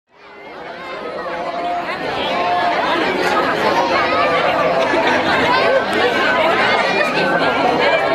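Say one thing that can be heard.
A crowd of people chatter loudly nearby outdoors.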